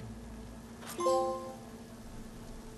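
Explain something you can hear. A bright chime rings out once.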